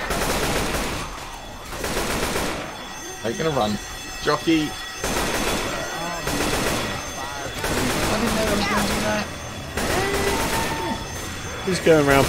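Rapid rifle gunfire crackles in bursts.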